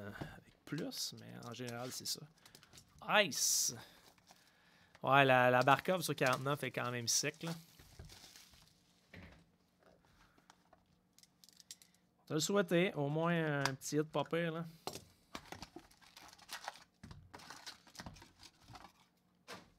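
Cardboard scrapes and rustles as a box is handled and opened.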